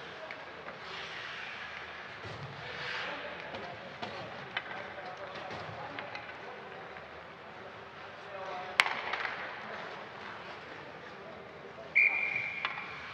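Ice skates scrape and hiss across the ice in a large echoing arena.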